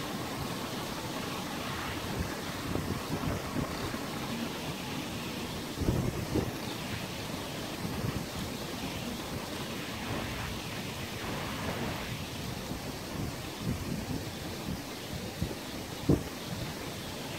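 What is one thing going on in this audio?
Waves lap gently against the water's surface.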